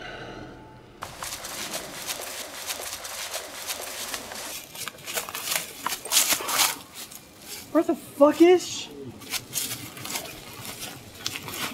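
Branches and twigs snap and rustle as a man pushes through brush.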